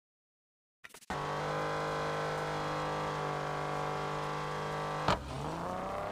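A car engine idles with a deep steady hum.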